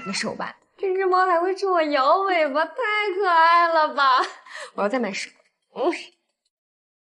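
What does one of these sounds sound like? A young woman speaks cheerfully and with animation.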